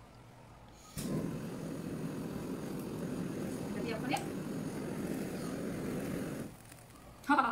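A blowtorch flame roars steadily.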